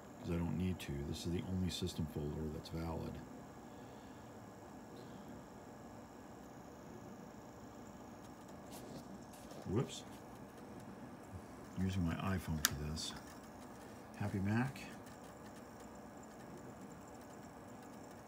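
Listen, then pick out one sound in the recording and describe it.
An old computer monitor hums with a faint, steady high whine.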